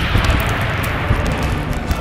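A loud crash and rumble of a heavy impact.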